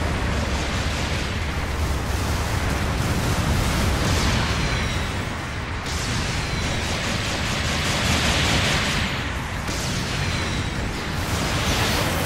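Gunfire crackles in a video game battle.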